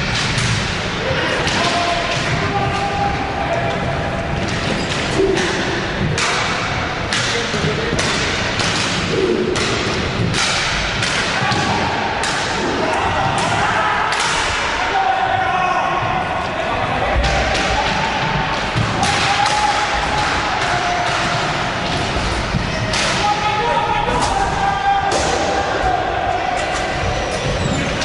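Roller skate wheels rumble across a wooden floor.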